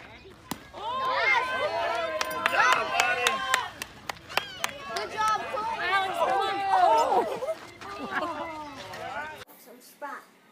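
Children and adults shout and cheer outdoors.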